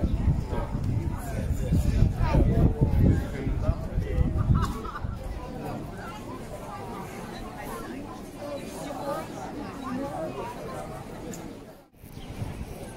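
A crowd of people chatter outdoors nearby.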